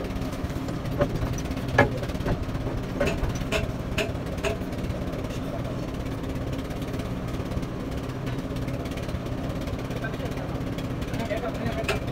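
Metal parts clank and knock as a mechanic works on a truck's wheel hub.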